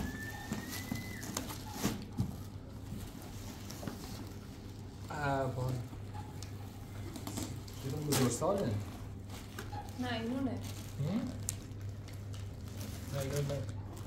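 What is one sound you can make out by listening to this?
Plastic bags crinkle.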